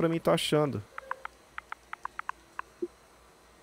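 Short electronic beeps sound in quick succession as letters are selected.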